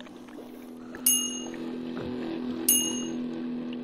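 A bright chime rings twice.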